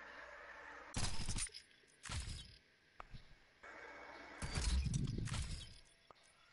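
Short electronic menu sounds click and whoosh as selections change.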